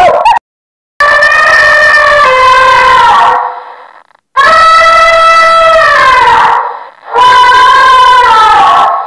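An elephant trumpets loudly in long calls.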